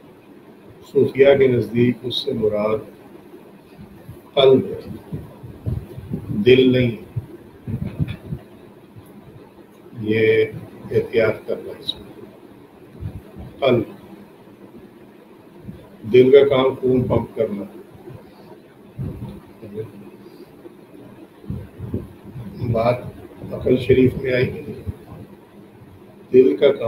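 An elderly man speaks calmly into a microphone in bursts with pauses.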